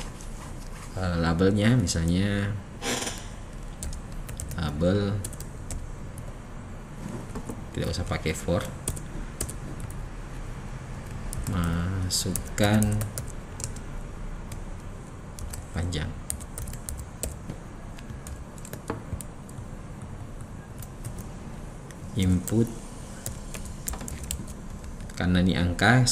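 A man speaks calmly, in short phrases, into a close microphone.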